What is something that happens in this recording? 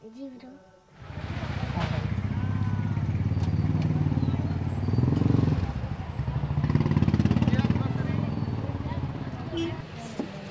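Traffic engines rumble loudly on a busy street outdoors.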